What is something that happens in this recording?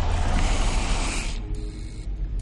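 A creature hisses loudly up close.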